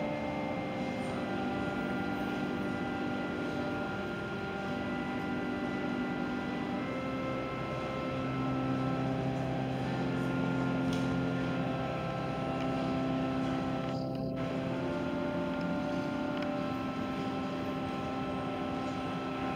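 An organ plays slow, sustained chords in a large echoing hall.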